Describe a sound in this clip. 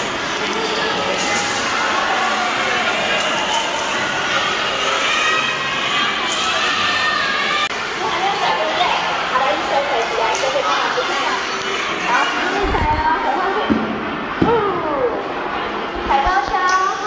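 Many young children chatter and shout in a large echoing hall.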